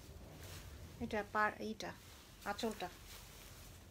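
A young woman speaks briefly and calmly, close by.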